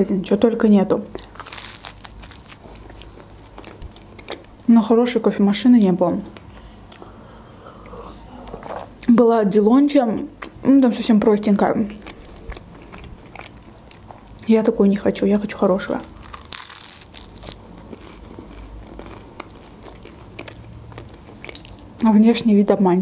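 Crunchy bread crackles as a young woman chews it close to a microphone.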